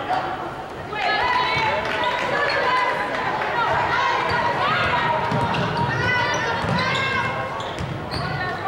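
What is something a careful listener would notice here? Basketball sneakers squeak on a hardwood court in a large echoing hall.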